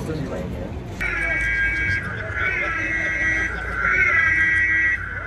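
A car siren wails loudly nearby.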